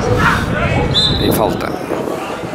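A referee's whistle blows once, short and shrill.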